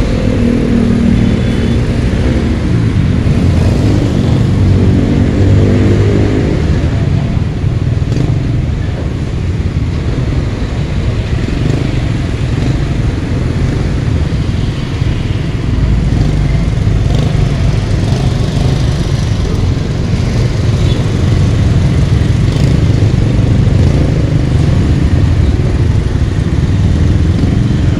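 Engines of motorcycles and trucks rumble all around.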